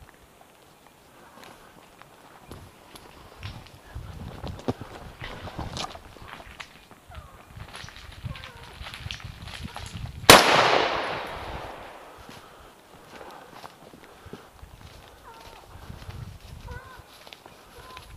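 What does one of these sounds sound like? Footsteps crunch through dry brush and undergrowth.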